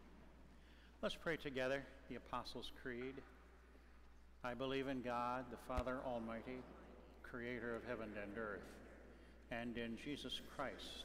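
A man reads aloud through a microphone in a large echoing room.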